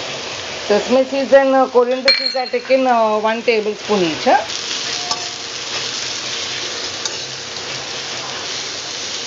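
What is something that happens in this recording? Onions and chillies sizzle in hot oil.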